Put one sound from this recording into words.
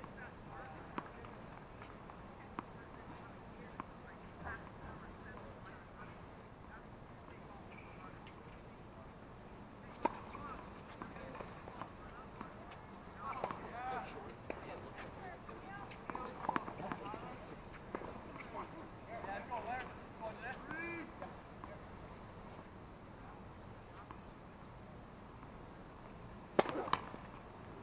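Tennis balls are struck with rackets, with sharp pops.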